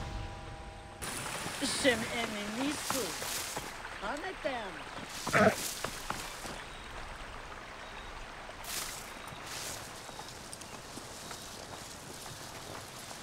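Tall dry grass rustles as someone runs through it.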